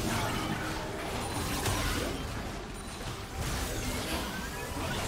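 Game spell effects whoosh and crackle in a busy fight.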